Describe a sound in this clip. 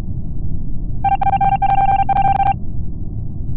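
Rapid electronic beeps tick in a quick run.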